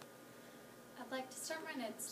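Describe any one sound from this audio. A young woman speaks up clearly.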